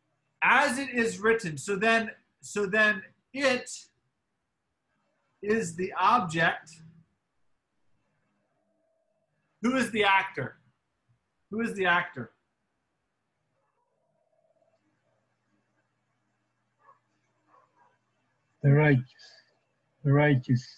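A man speaks calmly in short phrases, heard through an online call.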